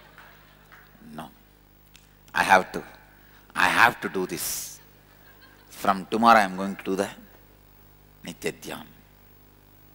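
A man speaks with animation through a headset microphone, in short bursts with pauses.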